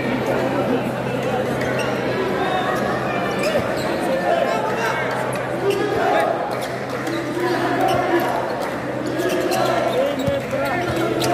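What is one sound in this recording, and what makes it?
A large crowd chatters and cheers in an echoing indoor hall.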